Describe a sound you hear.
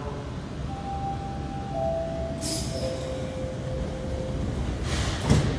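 Descending chime tones sound inside the train.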